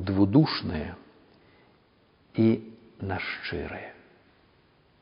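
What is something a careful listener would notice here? An older man speaks calmly and clearly into a microphone.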